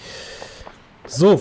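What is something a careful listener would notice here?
A young man speaks briefly and close to a microphone.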